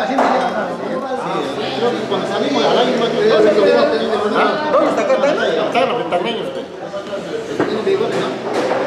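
Spoons clink against bowls.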